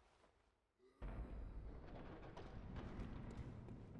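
A heavy door grinds open with a low rumble.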